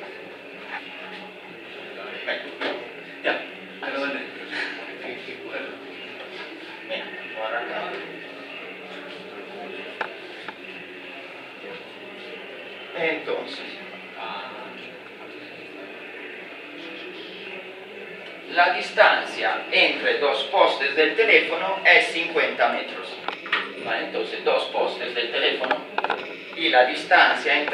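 A young man talks in a room, moderately close.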